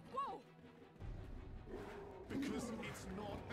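A large beast roars.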